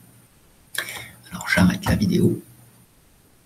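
An older man speaks briefly through a computer microphone.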